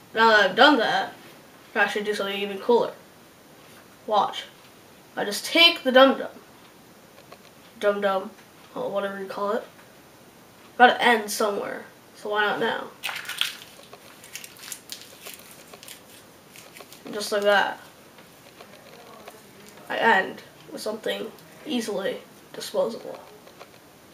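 A boy speaks calmly and close by, in short phrases with pauses.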